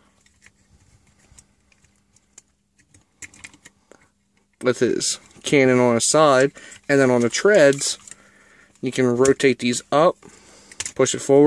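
Plastic toy parts click and rattle softly as they are handled.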